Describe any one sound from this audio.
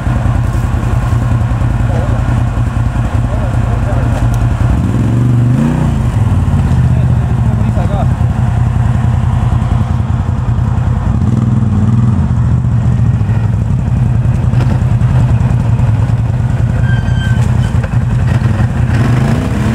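A quad bike engine rumbles and revs as it climbs through rough ground.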